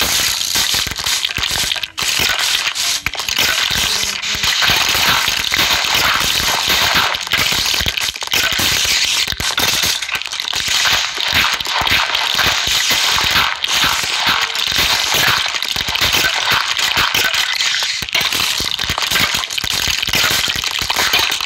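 A video game shovel digs through dirt with soft crunching thuds.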